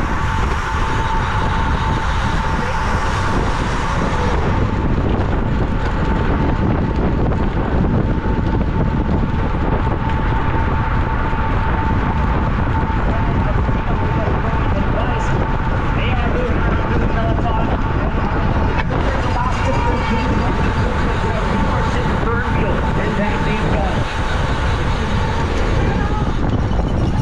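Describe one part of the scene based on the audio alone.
Bicycle tyres hum on the road at speed.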